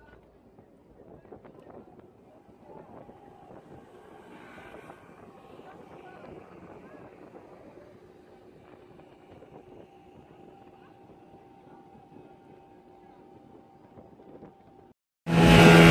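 A boat's engine hums steadily.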